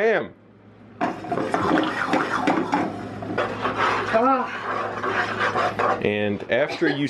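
Water bubbles at a rolling boil in a pot.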